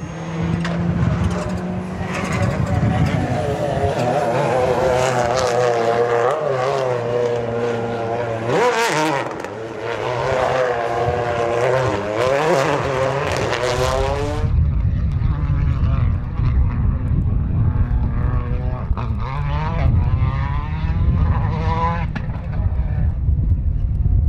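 A rally car engine roars and revs up and down as the car races past.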